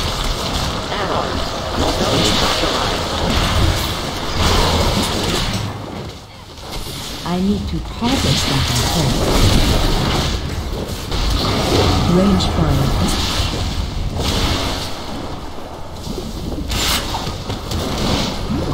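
Electric spell effects crackle in a video game battle.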